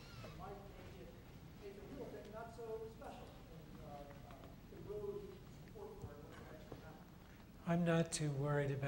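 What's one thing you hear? A middle-aged man speaks calmly, with pauses.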